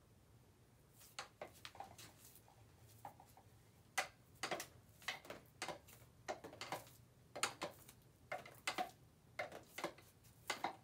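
Bare feet pad and shuffle on a hard floor.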